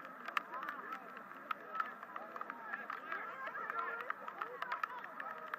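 A crowd of spectators chatters and cheers in the distance.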